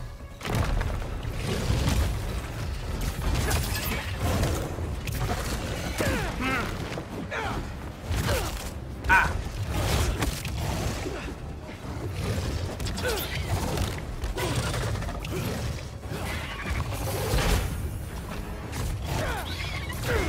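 A huge lizard creature roars and growls.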